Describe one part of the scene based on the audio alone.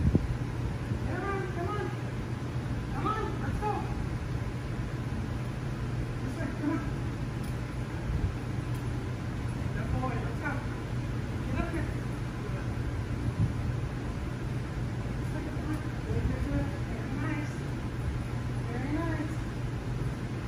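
A woman talks encouragingly to a dog at a distance in a large echoing hall.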